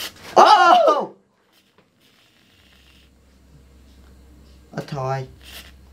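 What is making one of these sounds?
A whipped cream can hisses as cream is sprayed.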